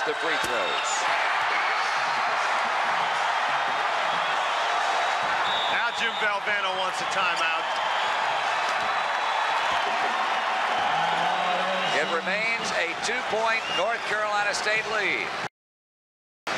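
A large crowd roars and cheers loudly in a big echoing arena.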